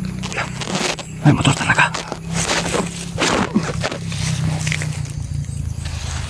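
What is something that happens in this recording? A young man whispers urgently close by.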